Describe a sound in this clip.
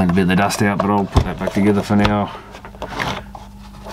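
A plastic case knocks against a hard surface as it is turned over.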